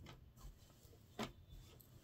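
Cloth rustles softly as it is handled.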